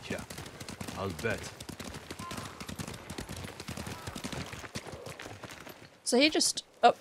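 Horses' hooves thud steadily on a dirt path.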